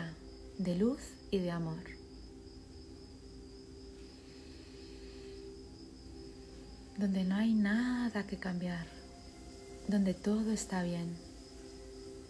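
A woman speaks slowly and calmly in short phrases, close to a microphone.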